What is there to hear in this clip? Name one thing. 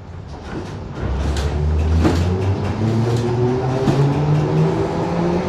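A train's motor hums with a rising whine.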